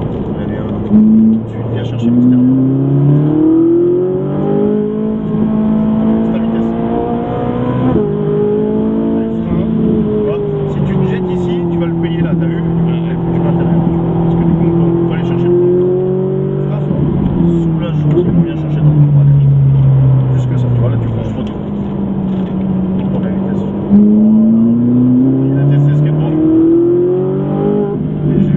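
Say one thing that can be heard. A car engine roars and rises and falls in pitch as it revs through the gears.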